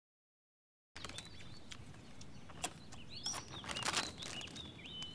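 A plastic snack bag crinkles as it is shaken.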